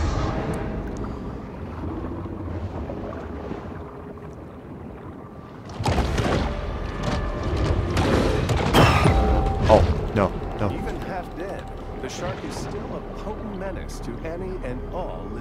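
Muffled underwater sounds swirl and bubble.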